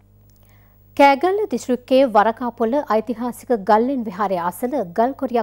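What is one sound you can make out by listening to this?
A young woman reads out the news clearly through a microphone.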